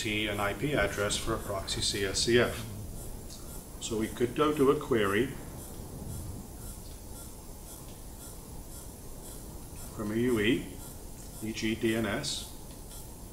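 A middle-aged man speaks calmly, lecturing close to a microphone.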